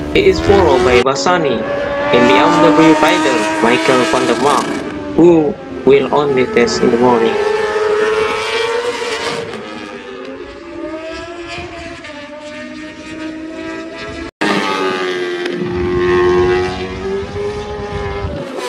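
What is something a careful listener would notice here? Racing motorcycle engines scream at high revs and rise and fall in pitch as they pass.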